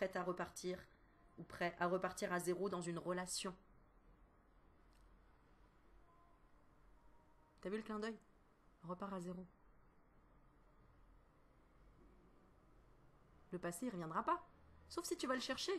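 A woman speaks expressively and close to a microphone, with pauses.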